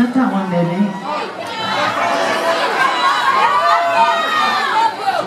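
A woman sings loudly into a microphone.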